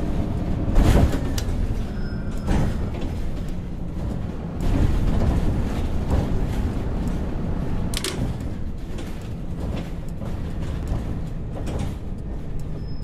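A bus engine hums steadily as the bus drives along.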